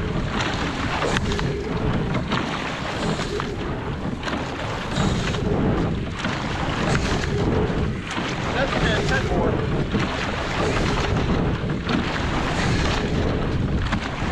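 Oars splash and churn through calm water in a steady rhythm.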